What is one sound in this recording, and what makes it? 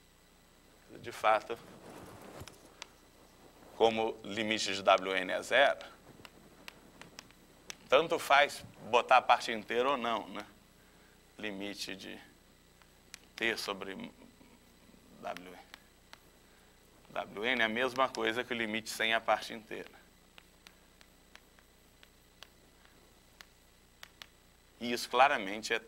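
A man speaks calmly, close to a microphone, in bursts with pauses.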